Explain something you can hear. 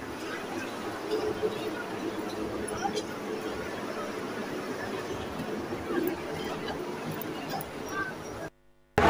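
A crowd shouts and clamours outdoors nearby.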